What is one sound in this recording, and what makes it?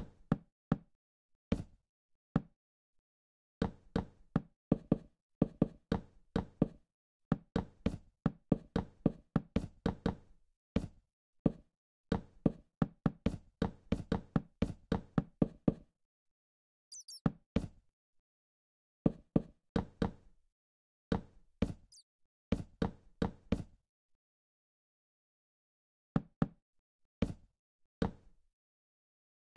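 Wooden blocks are set down with quick, soft knocks, in rapid bursts.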